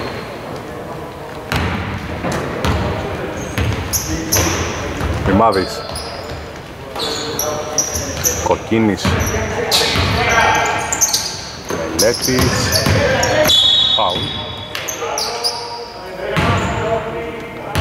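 Young men shout and call to each other across an echoing hall.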